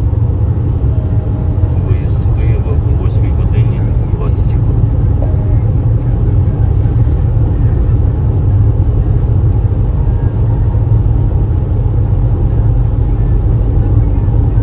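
Heavy traffic rumbles steadily along a busy road.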